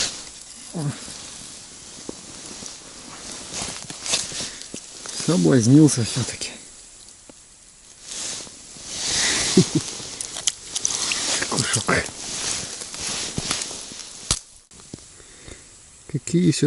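A padded jacket rustles as arms move.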